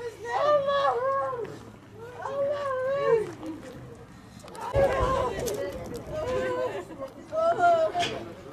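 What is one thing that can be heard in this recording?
Women wail and lament loudly outdoors.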